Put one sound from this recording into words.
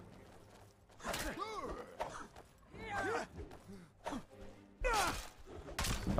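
Metal weapons clash and strike with sharp hits.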